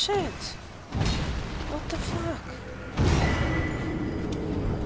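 Heavy blows thud as a monster strikes.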